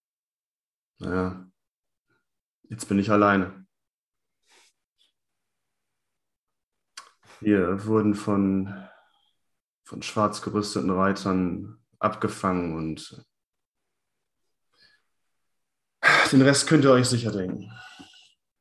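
A man speaks calmly through a headset microphone over an online call, in short bursts with pauses.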